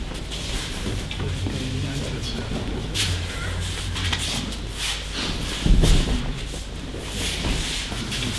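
Bare feet shuffle and slap on a mat.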